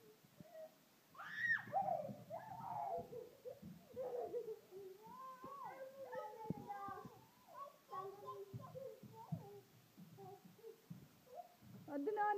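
A toddler babbles and chatters close by.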